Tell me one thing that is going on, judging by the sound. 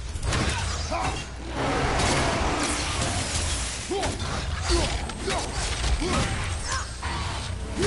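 Creatures snarl and screech.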